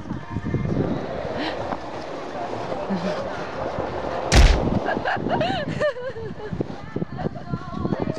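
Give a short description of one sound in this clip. Ice skates scrape and glide across ice.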